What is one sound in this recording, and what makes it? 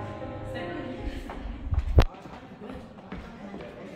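Shoes shuffle softly on a wooden floor.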